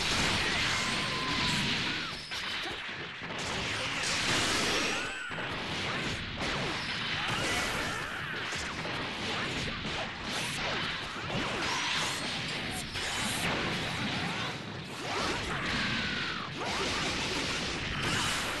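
Energy blasts roar and explode.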